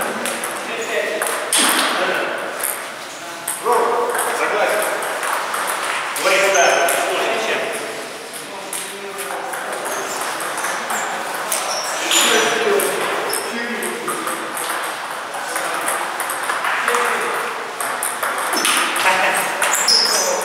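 A table tennis ball bounces on the table.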